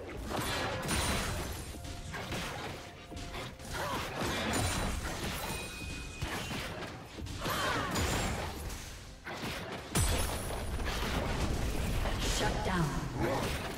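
Weapons clash and strike in quick bursts.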